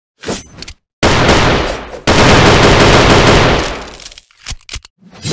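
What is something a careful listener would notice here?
A heavy weapon fires with a long roaring blast.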